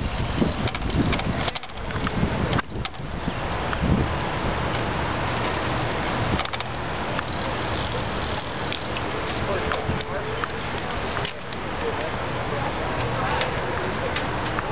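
Bicycle gears click and whir.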